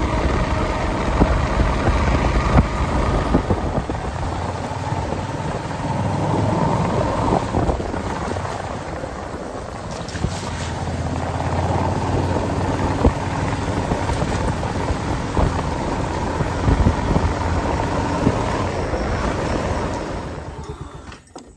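A motorbike engine hums steadily.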